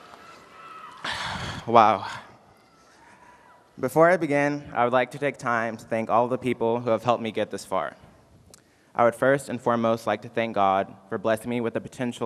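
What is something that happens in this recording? A young man speaks calmly into a microphone, heard through loudspeakers in a large hall.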